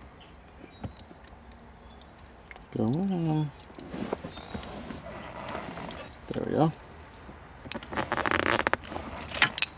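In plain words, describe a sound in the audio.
Pliers crimp small wire connectors with a faint squeeze and click.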